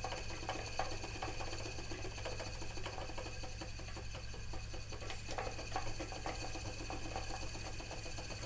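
A wooden spinning wheel whirs and clicks steadily.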